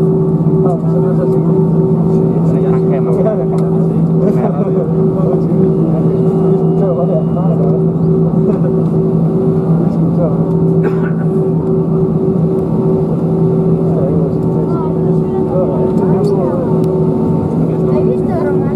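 Jet engines hum steadily inside an aircraft cabin.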